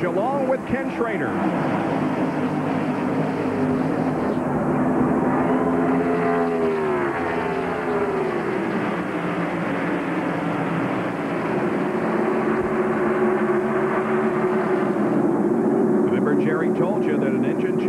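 Engines whine and drop in pitch as cars pass by close.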